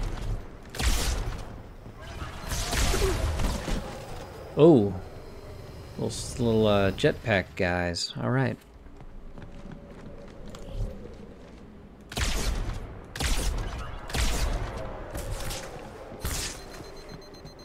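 Energy weapons fire in sharp bursts.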